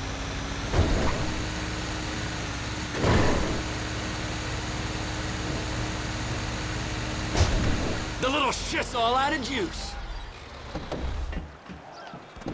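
A truck engine rumbles steadily as the truck drives along.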